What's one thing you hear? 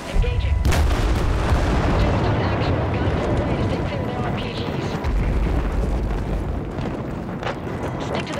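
Explosions boom and rumble loudly close by.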